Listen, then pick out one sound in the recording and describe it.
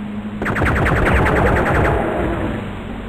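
A gun fires in a rapid, loud burst.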